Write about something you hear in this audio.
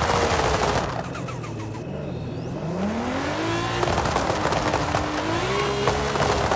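A sports car engine revs up and down through gear changes.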